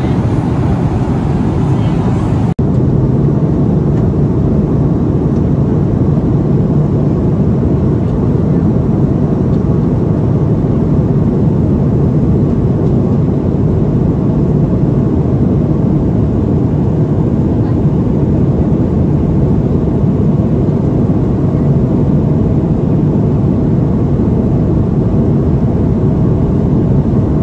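A steady, loud roar of jet engines and rushing air fills an aircraft cabin.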